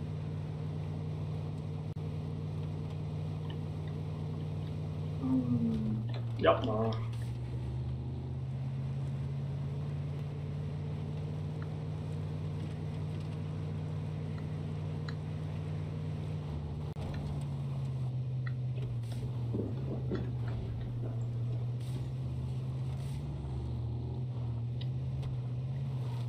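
A truck engine drones steadily as it drives.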